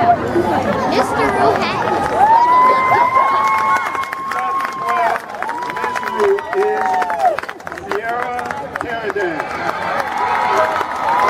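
A crowd cheers and chatters in an open outdoor stadium.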